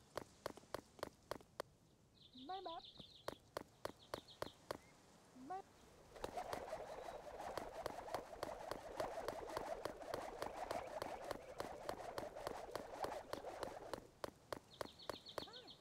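Footsteps patter quickly and steadily.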